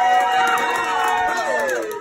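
Adults clap their hands.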